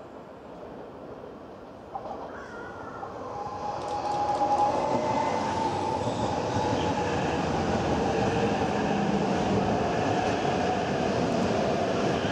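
A high-speed train approaches and rushes past close by with a rising roar.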